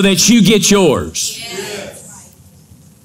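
A man speaks emphatically into a microphone in a large hall.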